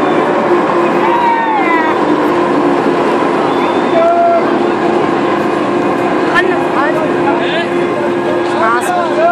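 Riders scream with excitement on a fairground ride.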